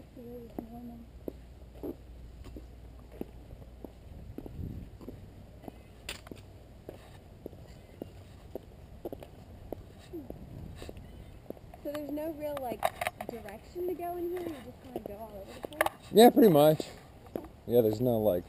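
Footsteps crunch steadily along a gravel path outdoors.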